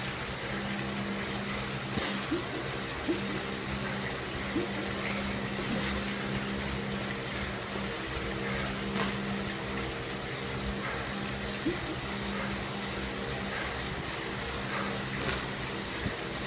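An indoor bike trainer whirs steadily under pedalling.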